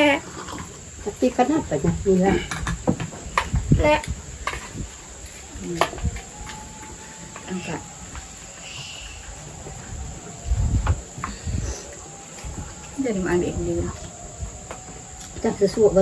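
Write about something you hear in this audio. Dishes and cups clink and knock.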